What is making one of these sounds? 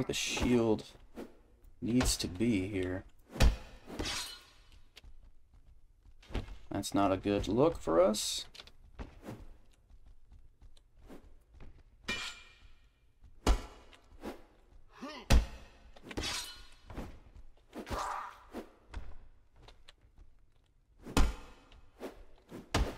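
Weapons clash and strike sharply in a close fight.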